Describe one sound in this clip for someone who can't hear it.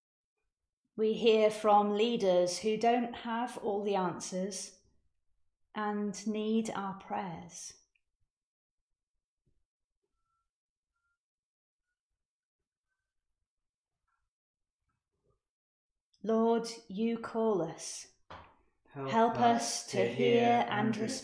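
A woman speaks calmly and slowly into a close microphone, pausing between phrases.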